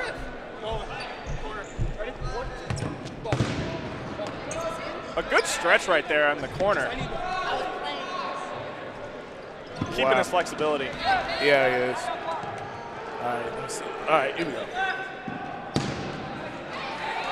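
Young men shout and call out loudly in a large echoing gym.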